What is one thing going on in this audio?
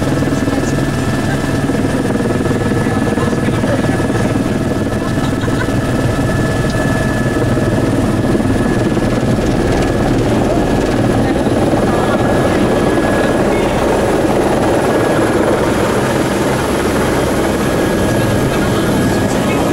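An aircraft engine drones loudly and steadily, heard from inside the cabin.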